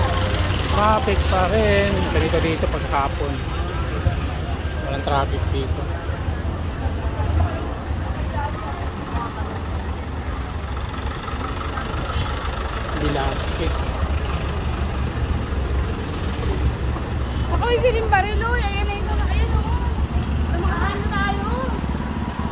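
A busy street crowd murmurs outdoors.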